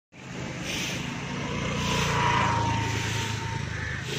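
A motor scooter engine hums nearby.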